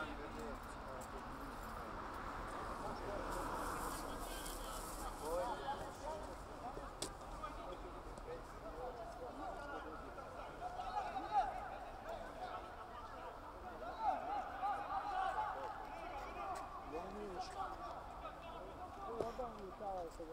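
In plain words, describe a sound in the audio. Men shout and call to each other across an open outdoor pitch.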